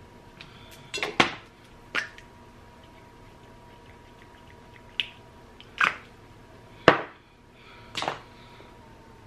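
Small objects clack and tap on a table.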